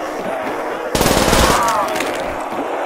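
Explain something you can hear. A gun fires in short, loud bursts.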